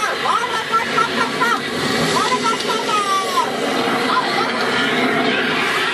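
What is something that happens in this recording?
Flames roar and crackle.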